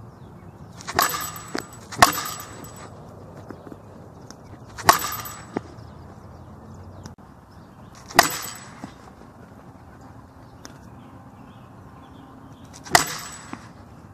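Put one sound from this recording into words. A bat cracks sharply against a ball, again and again.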